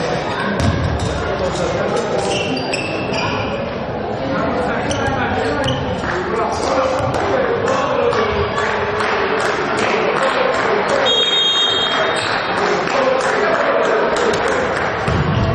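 A volleyball is struck by hands during a rally.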